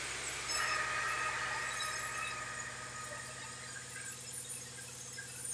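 A blade saws through a log with a whining screech.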